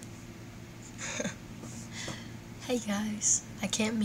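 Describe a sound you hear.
A young woman giggles.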